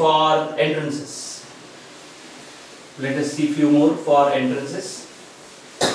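A man speaks calmly nearby, as if lecturing.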